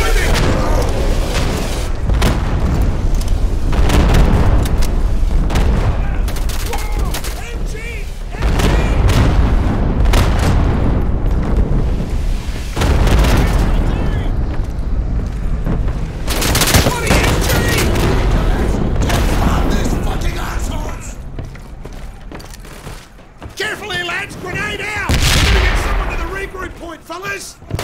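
Rifles fire in loud, rapid bursts and single shots.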